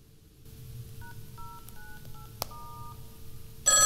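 Telephone keypad buttons beep as they are pressed.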